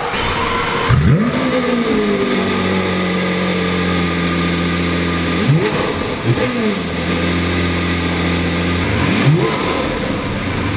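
A sports car engine revs up sharply and settles back.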